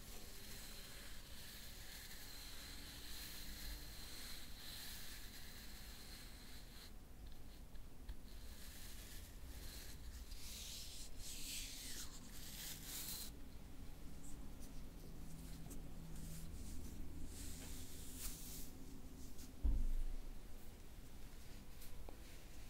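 Something crinkles and rustles softly close by, in gentle bursts.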